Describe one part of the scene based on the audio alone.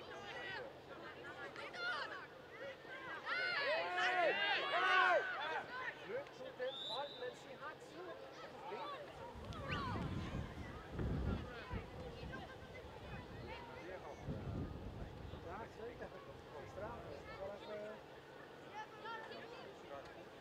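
Young players shout to each other in the distance across an open field.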